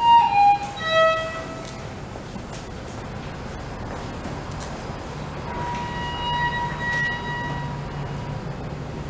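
A solo violin is bowed, playing held notes.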